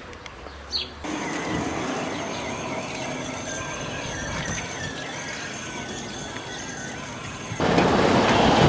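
Water splashes steadily from a fountain.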